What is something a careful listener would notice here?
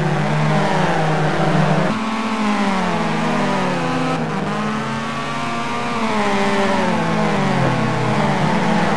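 A turbocharged four-cylinder hatchback engine pulls hard at full throttle and drops in pitch at each gear change.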